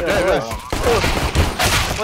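A pistol fires a shot.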